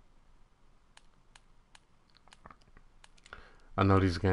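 Soft electronic clicks tick as a menu setting is adjusted.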